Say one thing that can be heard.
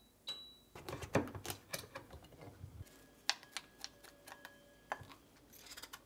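A spoon scrapes seeds from a pumpkin into a bowl.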